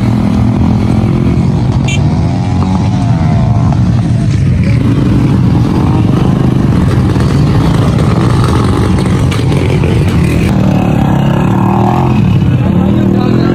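A motorcycle engine runs and revs close by.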